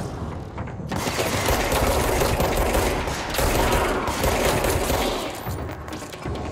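A pistol fires several shots in quick succession.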